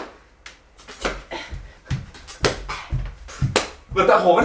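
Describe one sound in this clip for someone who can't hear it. Feet thump on a wooden floor as a young man dances.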